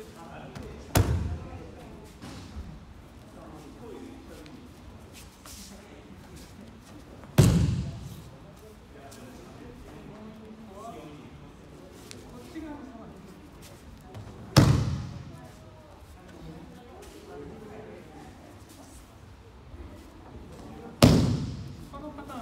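A body slaps down hard on a mat in a large echoing hall.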